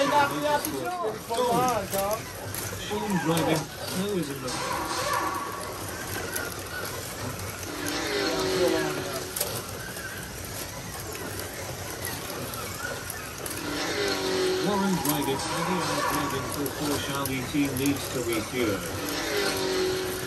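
Small electric slot cars whine as they race around a track.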